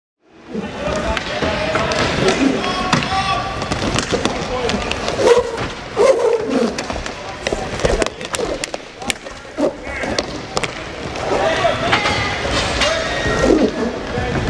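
Hockey sticks clack against a ball and each other.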